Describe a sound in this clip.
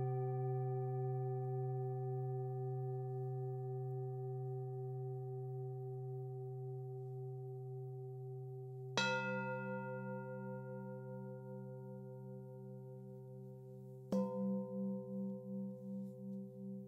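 A singing bowl rings with a long, steady hum.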